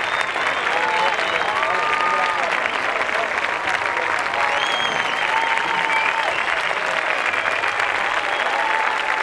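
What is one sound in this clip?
A large crowd applauds loudly outdoors.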